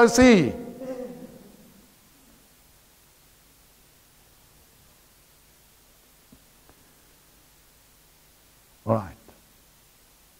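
A middle-aged man shouts out loudly, then says a short word after a long pause.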